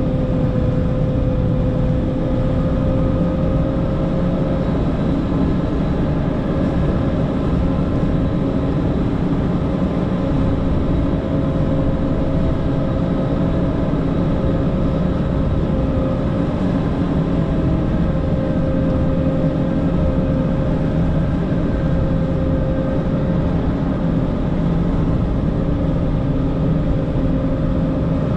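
Snow scrapes and churns under a plow blade.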